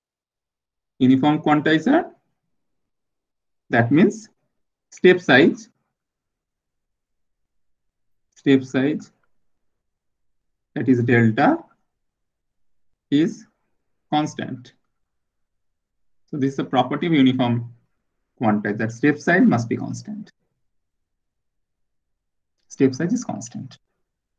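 A man explains calmly into a close microphone, in short phrases with pauses.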